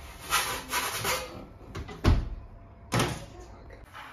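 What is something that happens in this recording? A wooden pizza peel scrapes and knocks against an oven.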